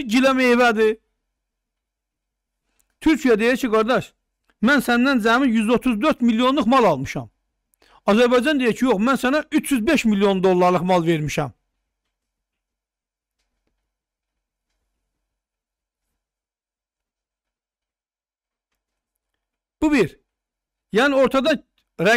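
A middle-aged man speaks calmly into a close microphone, pausing often.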